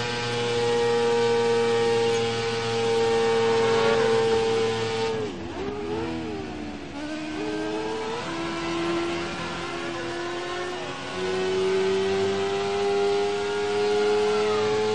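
A racing car engine whines loudly at high revs, dropping sharply when braking for a corner and then rising again through the gears.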